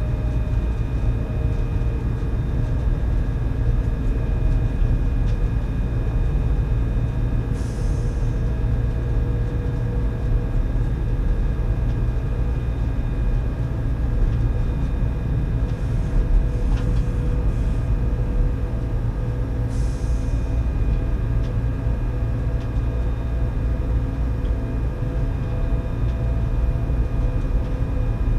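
A train hums and rumbles steadily along the rails.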